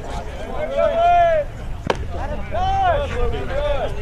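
A pitched ball smacks into a catcher's mitt.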